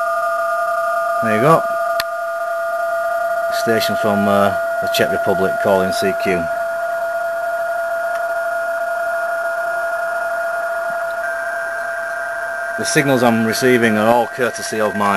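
A radio receiver plays a steady, high whistling data tone.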